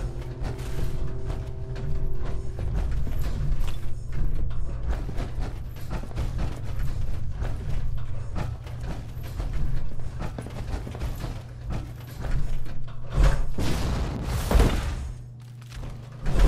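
Heavy armored footsteps clank on a hard floor.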